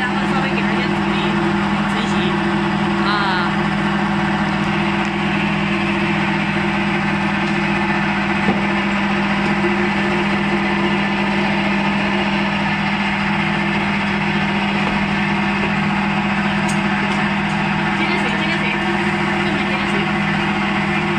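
An electric motor hums as it drives a belt-driven rice cake extruder.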